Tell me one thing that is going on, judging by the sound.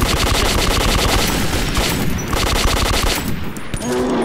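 A rapid-fire gun shoots in loud bursts.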